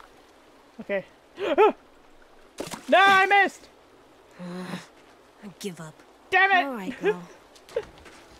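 A young boy groans and speaks wearily, close by.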